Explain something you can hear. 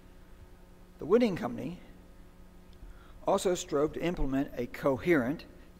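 An elderly man speaks calmly into a microphone in a large hall.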